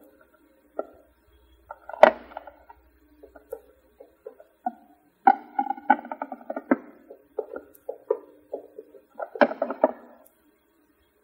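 Dishes clink and clatter as plates are stacked.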